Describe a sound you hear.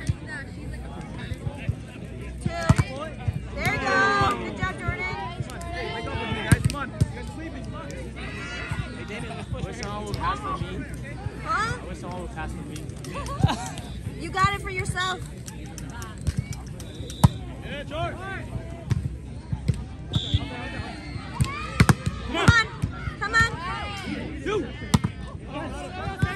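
A volleyball is struck by hand with a slap.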